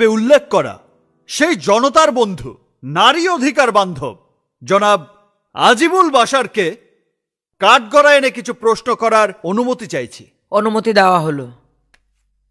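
A man speaks firmly and with animation.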